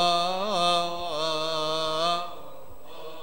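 A man chants a long sustained note through a microphone in an echoing hall.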